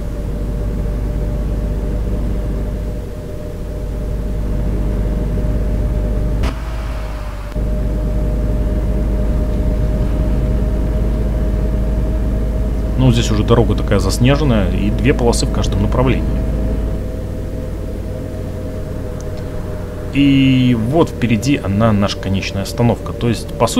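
A bus engine hums low and steadily.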